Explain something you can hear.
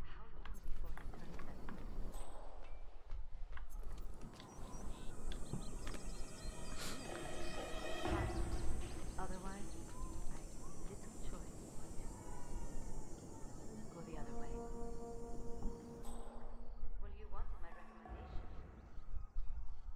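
Footsteps tread on stone and stairs.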